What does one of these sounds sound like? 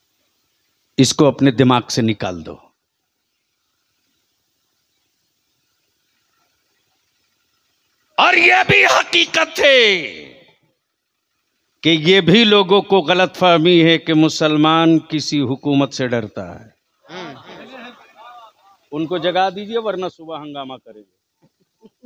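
A man speaks forcefully into a microphone over a loudspeaker, with long pauses.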